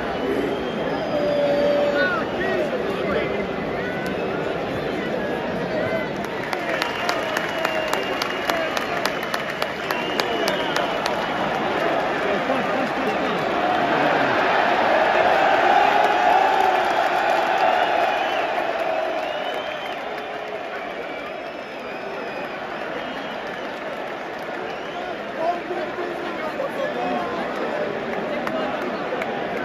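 A large stadium crowd roars and chants loudly, rising and falling.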